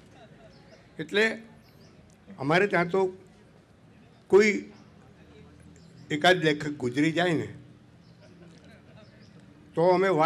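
An elderly man speaks slowly into a microphone, with pauses between phrases.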